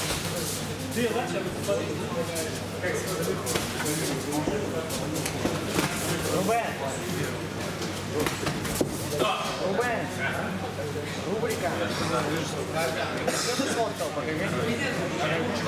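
A crowd of men and women chatter in the background of an echoing hall.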